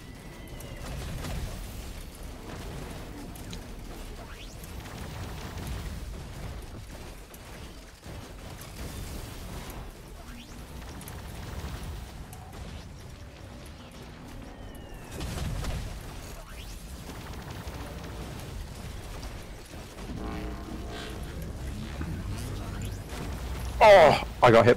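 Weapons fire and blasts thump steadily.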